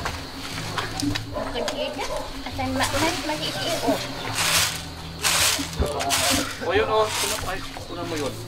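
Grain rustles and hisses as it is tossed on a woven tray.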